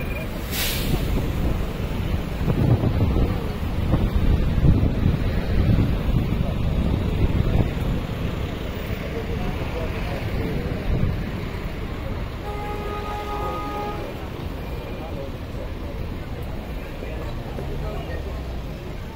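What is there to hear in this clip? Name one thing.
Outdoors, wind rumbles across the microphone.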